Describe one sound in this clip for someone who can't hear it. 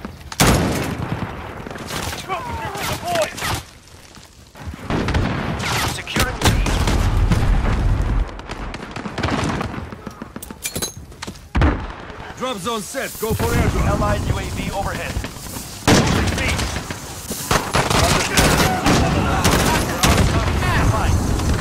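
Gunshots crack in short, loud bursts.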